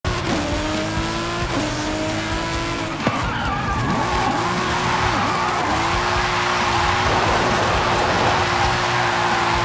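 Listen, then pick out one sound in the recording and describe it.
A car engine roars loudly, revving up and dropping as it shifts gears.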